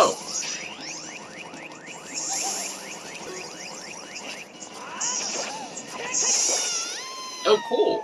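Flames whoosh and roar.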